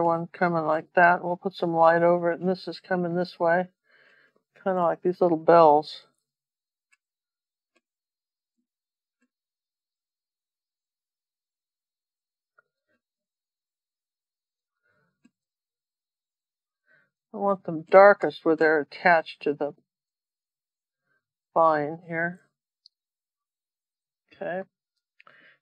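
An older woman speaks calmly and closely into a microphone.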